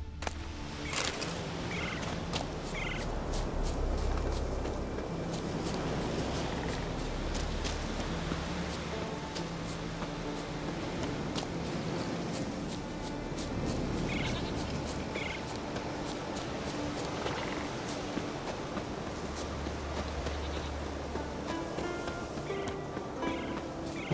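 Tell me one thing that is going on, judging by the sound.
Footsteps run quickly over grass and earth.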